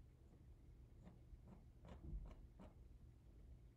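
A palette knife taps lightly against a hard surface.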